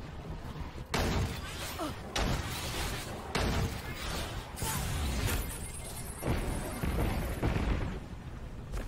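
A heavy gun fires in loud, sharp blasts.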